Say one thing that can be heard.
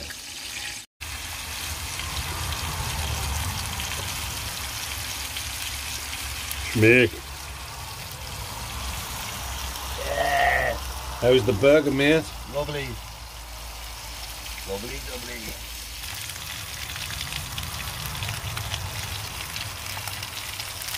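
Meat sizzles in a frying pan.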